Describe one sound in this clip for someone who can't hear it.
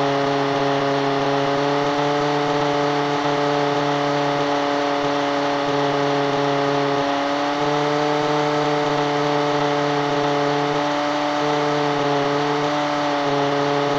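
A propeller plane's engine drones steadily and loudly, close by.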